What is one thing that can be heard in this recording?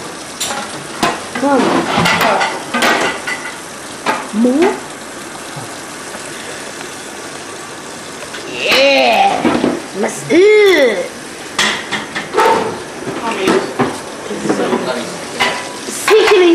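Dishes clatter and clink.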